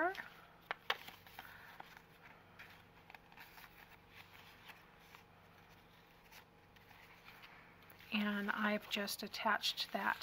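Paper crinkles and rustles as it is folded and handled.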